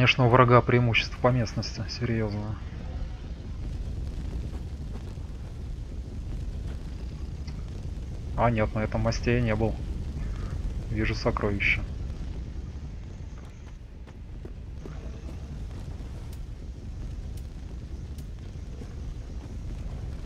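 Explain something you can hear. Footsteps crunch over dry leaves.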